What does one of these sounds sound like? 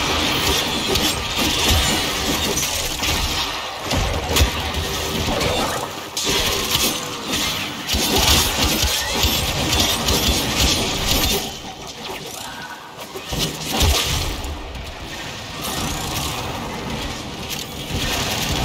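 Game weapons fire and slash in rapid bursts.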